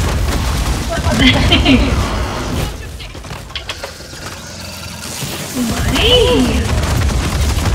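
A young woman speaks into a microphone with animation.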